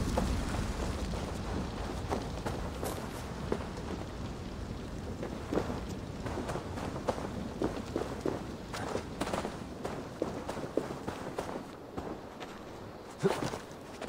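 Footsteps crunch over grass and earth at a steady pace.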